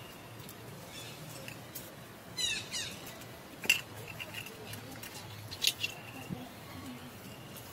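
A plastic cup crinkles and taps against stone.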